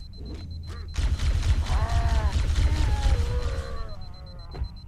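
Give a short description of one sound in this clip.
An energy weapon fires a rapid stream of shots.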